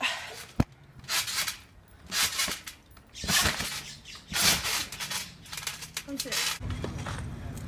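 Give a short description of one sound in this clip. A trampoline creaks and thumps as a boy bounces on it.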